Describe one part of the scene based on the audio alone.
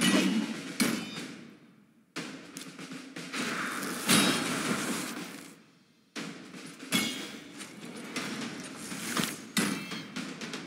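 Blades strike with sharp metallic hits.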